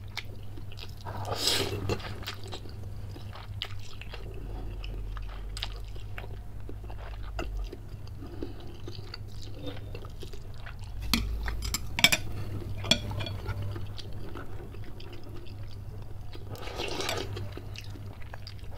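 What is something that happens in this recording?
A man slurps noodles loudly and close.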